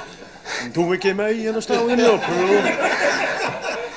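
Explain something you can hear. A middle-aged man laughs.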